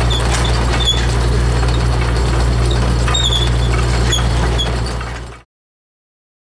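A drilling rig's engine drones loudly and steadily.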